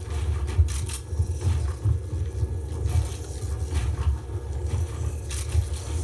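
Building pieces in a video game snap into place with quick, sharp clicks.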